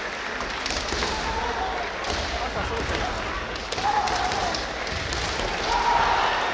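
Kendo fighters shout loud, drawn-out cries in a large echoing hall.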